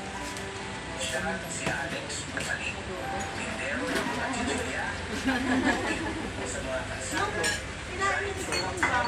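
Dishes and utensils clink.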